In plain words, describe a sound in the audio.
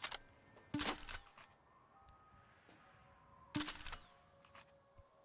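Metal parts clack and rattle sharply as they are handled.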